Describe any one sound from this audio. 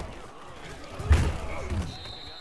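Football players crash together in a heavy tackle.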